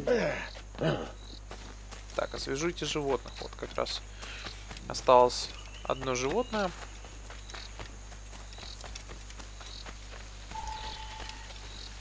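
Footsteps rustle quickly through leafy undergrowth.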